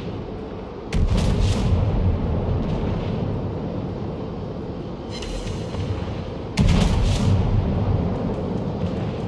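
Heavy naval guns boom in loud, echoing salvos.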